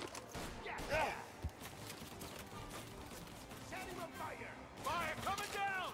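A man shouts a command.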